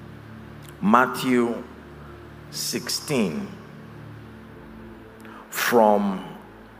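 A man preaches with animation into a microphone, his voice rising in short bursts.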